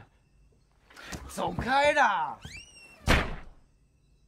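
A young man shouts angrily.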